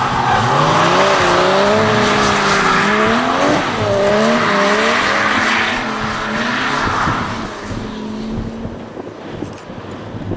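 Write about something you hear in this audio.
Car engines rev hard and rise and fall in pitch.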